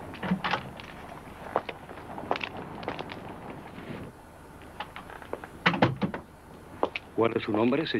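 Footsteps click on a hard floor in an echoing hall.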